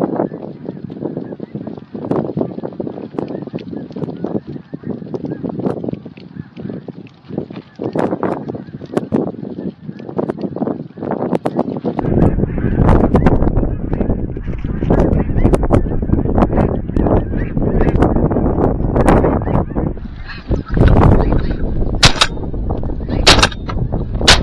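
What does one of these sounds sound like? A large flock of geese honks and calls overhead.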